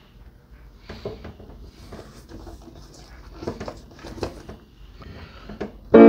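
A piano plays softly.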